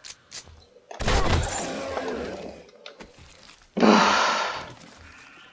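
A gun fires loudly with a burst of noise.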